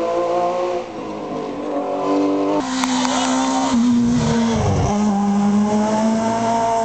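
A rally car engine roars loudly, revving and shifting gears as it approaches.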